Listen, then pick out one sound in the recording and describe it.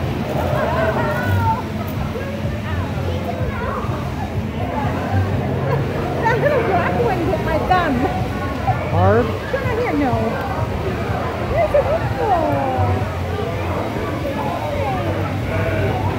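A woman talks and laughs cheerfully up close.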